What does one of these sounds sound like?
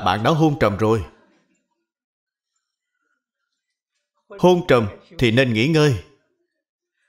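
An elderly man speaks calmly and warmly into a microphone, with pauses.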